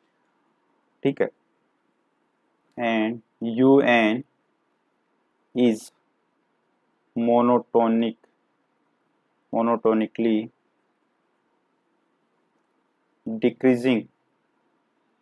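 A man speaks calmly into a close microphone in short phrases with pauses.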